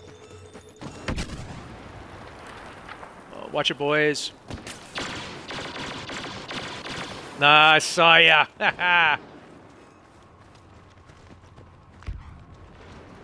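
Blaster shots fire in rapid bursts.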